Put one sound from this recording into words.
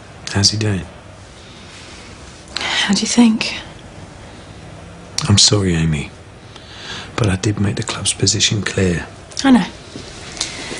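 A woman speaks calmly in reply, close by.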